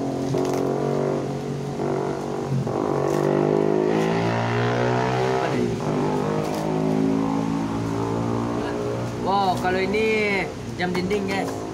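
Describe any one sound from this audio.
Plastic wrapping rustles and crinkles as it is torn open.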